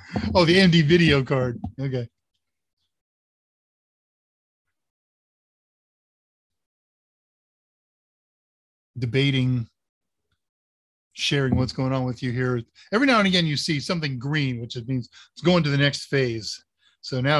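An older man talks in a relaxed, friendly way over an online call.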